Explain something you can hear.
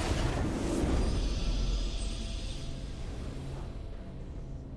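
A triumphant game fanfare swells loudly and then fades.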